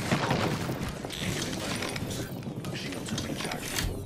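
A metal door slides open.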